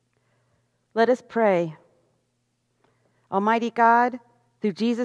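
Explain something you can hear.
A middle-aged woman speaks calmly into a microphone, reading out.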